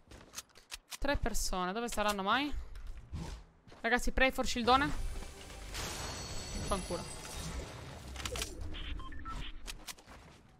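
A young woman talks into a close microphone with animation.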